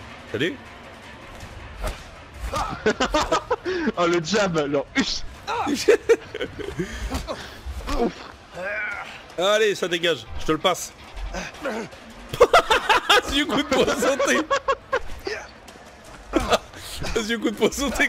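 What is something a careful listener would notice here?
Men grunt and shout as they brawl close by.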